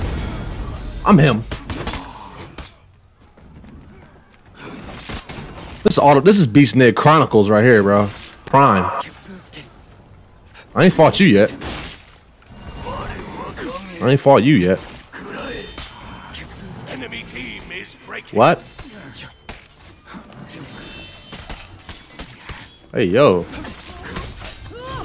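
A young man talks and exclaims with animation close to a microphone.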